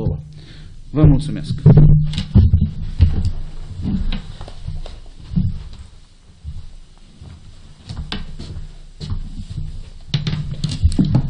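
Knocks and thumps sound close to a microphone.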